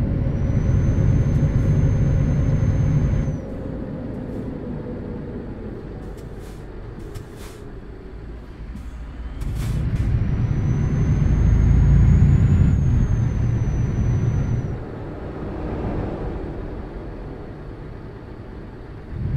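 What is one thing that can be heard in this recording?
A truck engine rumbles low and swells as it speeds up, then eases off.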